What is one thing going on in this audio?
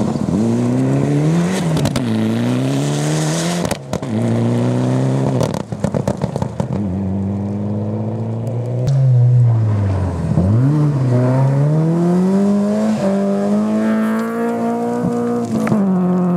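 A rally car engine roars and revs hard up and down nearby.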